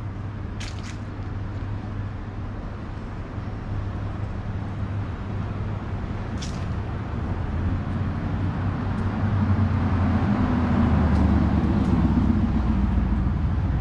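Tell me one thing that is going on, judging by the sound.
Road traffic rumbles low and steadily outdoors, growing louder toward the end.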